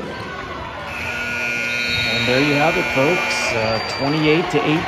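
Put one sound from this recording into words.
A buzzer sounds.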